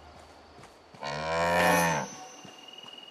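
A cow moos loudly nearby.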